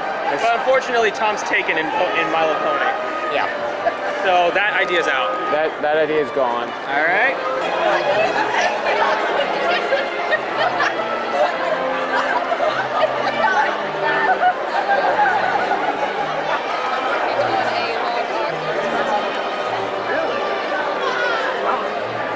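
Dance music plays over loudspeakers.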